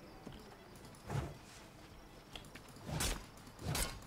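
Weapon swings whoosh and thud in short bursts.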